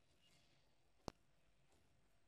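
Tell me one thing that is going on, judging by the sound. A wooden door clicks open.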